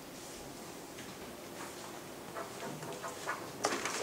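A cup is set down on a table with a light knock.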